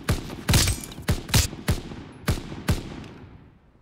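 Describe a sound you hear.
Rifle shots ring out sharply several times, echoing.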